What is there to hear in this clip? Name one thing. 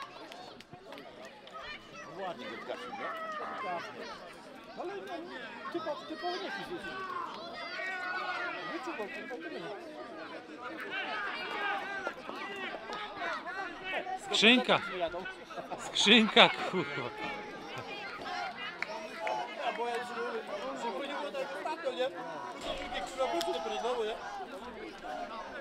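Young men shout and cheer with excitement outdoors.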